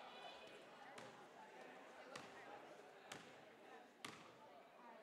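A basketball bounces on a wooden court in an echoing gym.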